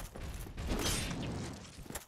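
Heavy metal armour clangs as a sword strikes.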